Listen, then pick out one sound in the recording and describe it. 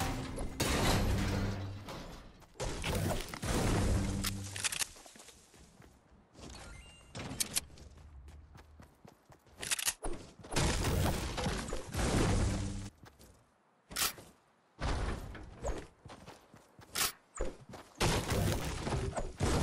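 A pickaxe chops into wood with sharp thuds.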